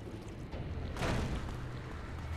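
A heavy thud sounds as something lands hard on pavement.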